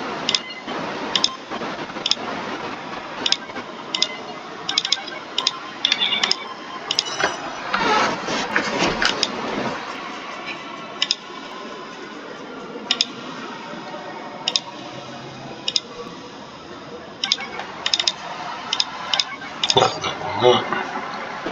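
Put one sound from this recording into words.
Game menu buttons click sharply, again and again.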